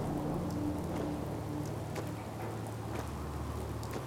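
Footsteps thud on pavement.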